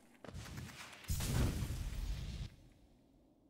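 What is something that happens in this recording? A bright chime swells and rings out.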